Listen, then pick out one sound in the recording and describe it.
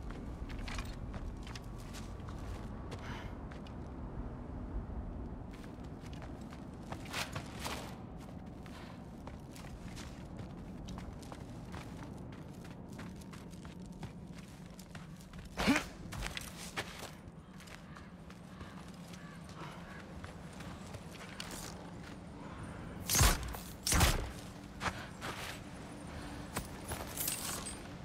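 Footsteps crunch on snow and rock.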